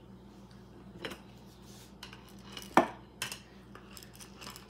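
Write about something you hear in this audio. A wooden rolling pin knocks and rolls on a wooden board.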